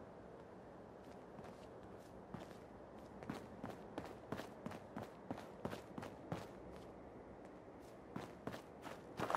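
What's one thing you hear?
Footsteps thud steadily on rubble and pavement.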